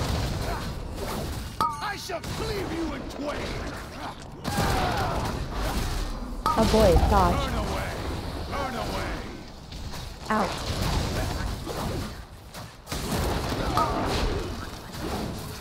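Magic spells crackle and burst in a fantasy battle.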